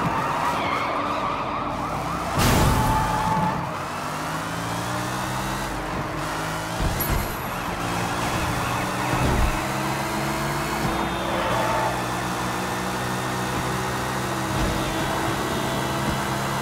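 A sports car engine roars steadily at high revs.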